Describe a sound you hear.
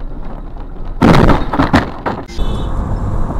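A car crashes into the back of a truck with a loud bang.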